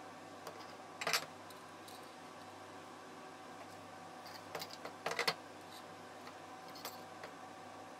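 A metal bracket clanks and knocks against a bench.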